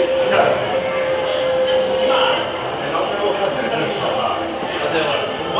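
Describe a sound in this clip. A jet engine drones steadily inside an airplane cabin.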